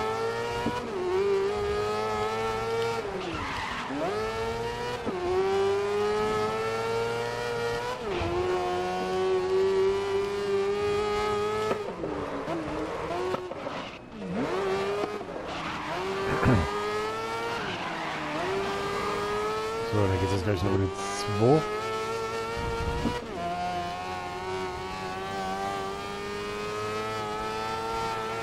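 A racing car engine whines at high revs, rising through the gears and dropping as it shifts down.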